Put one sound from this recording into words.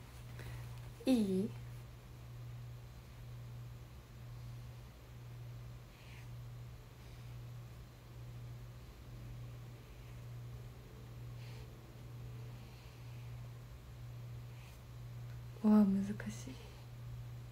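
A young woman speaks briefly and softly close to a microphone.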